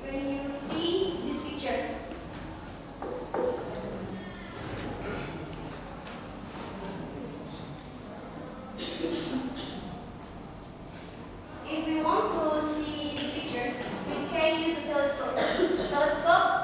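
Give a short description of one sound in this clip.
A young woman speaks calmly in a room with a slight echo.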